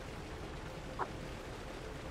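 A game menu blips as a choice is made.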